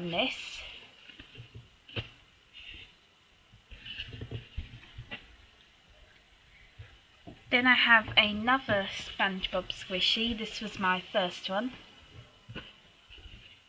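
Hands squeeze and rustle a soft foam toy.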